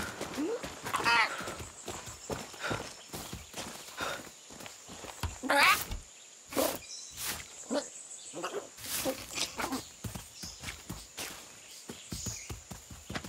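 A rooster clucks and crows nearby.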